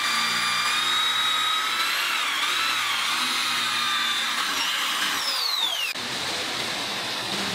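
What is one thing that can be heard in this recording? An electric drill whines steadily as it bores into wood, then winds down.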